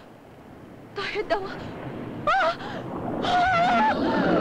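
A young woman cries out in fright.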